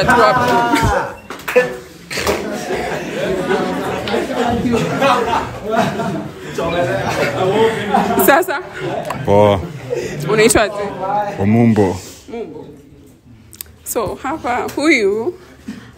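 A small crowd of young people laughs and cheers.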